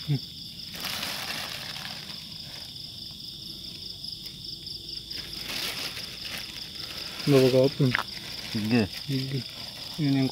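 A plastic bag rustles and crinkles close by.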